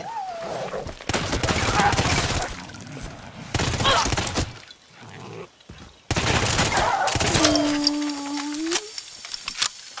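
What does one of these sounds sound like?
A gun fires loud bursts of shots.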